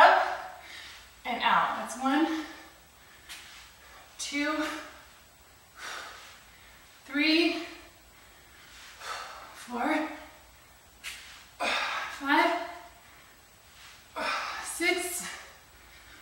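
A young woman speaks in short, breathless bursts nearby.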